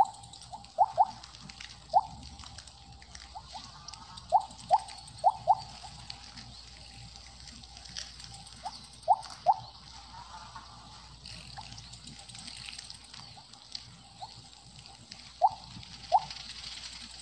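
Short electronic blips chime as a game snake gobbles food.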